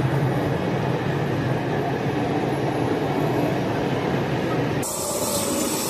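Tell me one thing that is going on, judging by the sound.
A heavy freight train rumbles and clatters past close by.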